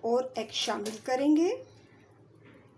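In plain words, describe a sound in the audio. Liquid pours from a bowl into a plastic jug.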